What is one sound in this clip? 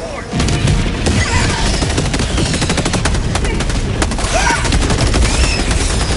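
Rapid gunfire crackles.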